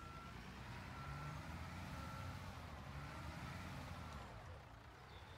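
A heavy truck engine rumbles and then fades out.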